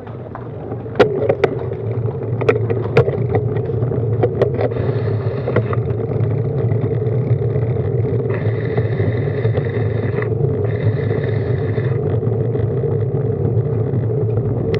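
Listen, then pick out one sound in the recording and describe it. Wind buffets outdoors as a cyclist rides.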